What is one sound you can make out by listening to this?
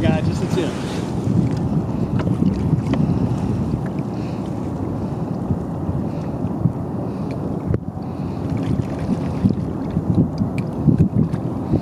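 Wind blows outdoors over open water.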